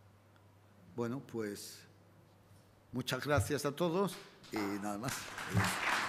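An elderly man speaks cheerfully into a microphone.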